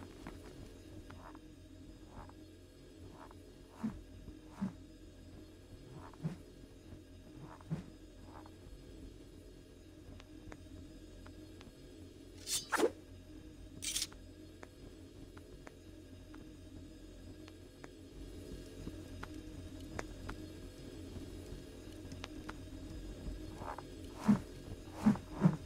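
A fire crackles softly in a hanging brazier.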